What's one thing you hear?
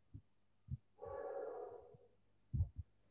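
A man speaks briefly and quietly into a headset microphone.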